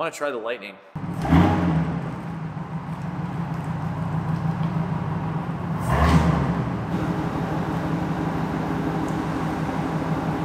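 A pickup truck engine idles with a low rumble and revs once, echoing in a large hall.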